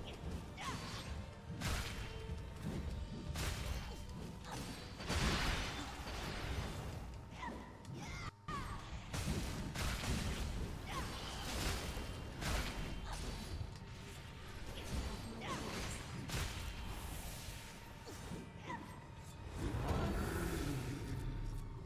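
Heavy weapon blows strike and clang again and again.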